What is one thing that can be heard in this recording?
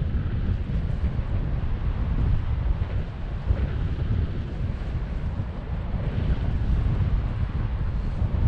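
Strong wind rushes and buffets steadily against a microphone.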